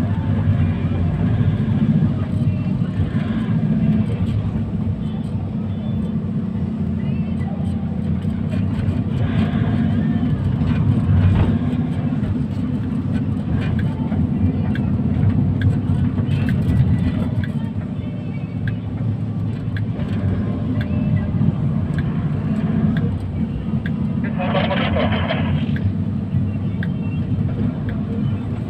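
A vehicle's engine rumbles steadily from inside while riding along a road.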